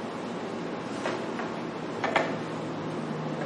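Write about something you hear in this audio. A chair scrapes and creaks as a man sits down.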